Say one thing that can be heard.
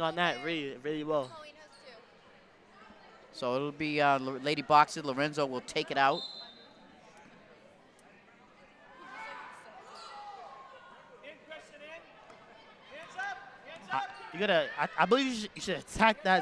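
Basketball players' sneakers squeak on a hardwood floor.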